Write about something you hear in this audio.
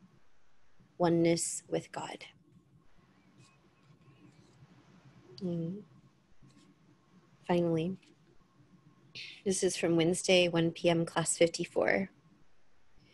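A woman speaks calmly through a microphone, in short bursts with pauses.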